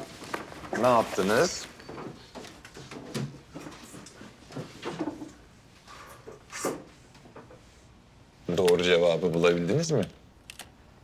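A man speaks in short bursts, close by.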